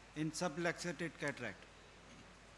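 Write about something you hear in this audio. A man speaks through a microphone in a large hall.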